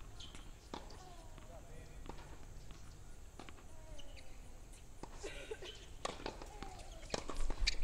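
Tennis balls are struck with rackets and bounce on a hard court, heard outdoors from a distance.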